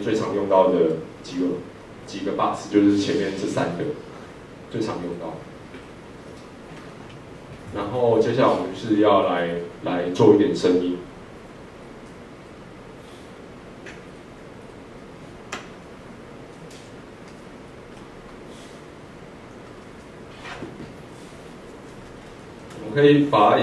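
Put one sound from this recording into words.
A young man speaks calmly through a microphone in a large room, with pauses.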